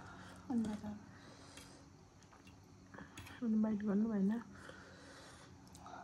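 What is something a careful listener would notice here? A fork clinks and scrapes against a plate.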